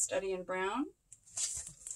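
A woman speaks with animation close by.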